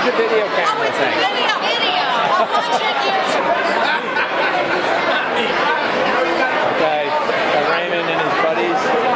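A crowd of adults chatters in an echoing room.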